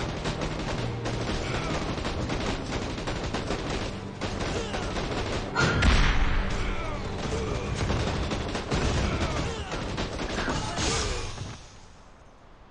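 Gunfire and explosions rumble in a busy battle.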